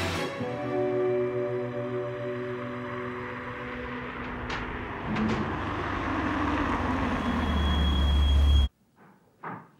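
A car engine rumbles as a car drives up slowly.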